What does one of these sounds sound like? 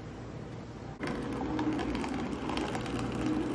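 Coffee trickles into a paper cup.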